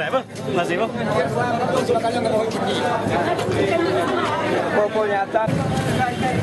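A crowd of men talks and shouts excitedly close by.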